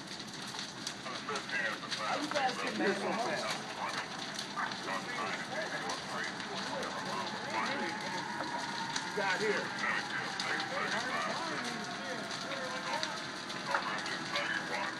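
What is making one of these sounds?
Burning wood pops and snaps sharply.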